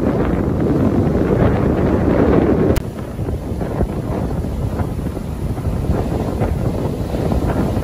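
Waves crash and roar onto the shore.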